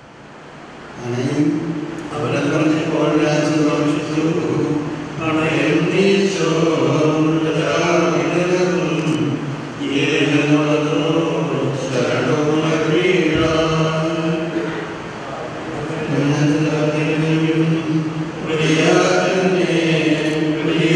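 An elderly man chants slowly into a microphone, heard through loudspeakers.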